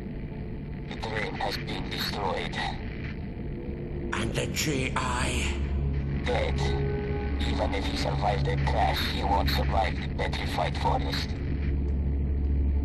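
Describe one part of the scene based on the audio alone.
A man speaks calmly in a low voice.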